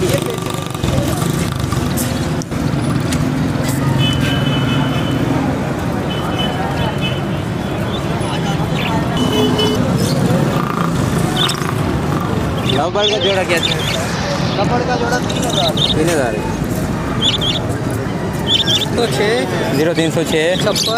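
Budgerigars chirp and chatter close by.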